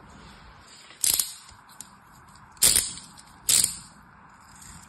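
Loud crisp crunches of soft sand being cut come in short bursts.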